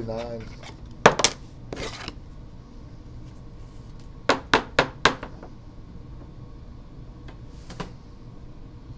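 Trading cards rustle and tap as they are handled.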